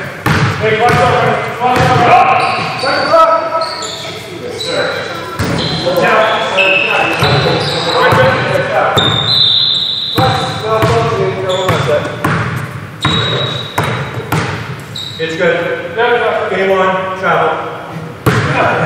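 Men shout and call out during a game, echoing in a large hall.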